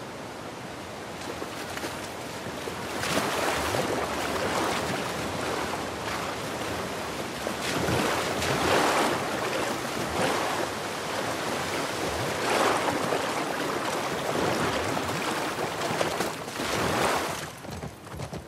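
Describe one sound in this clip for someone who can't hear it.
A waterfall roars and splashes nearby.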